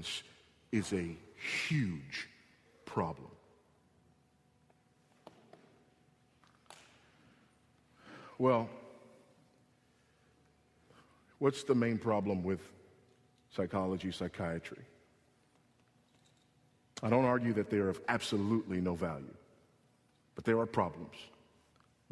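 A man preaches with animation into a microphone, in bursts with pauses between.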